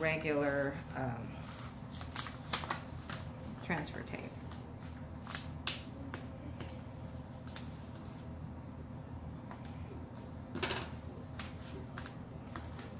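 Stiff paper crinkles and rustles close by as a backing sheet is peeled away.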